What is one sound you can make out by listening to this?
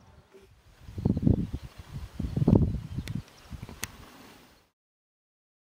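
Wind gusts and rumbles against the microphone in open country.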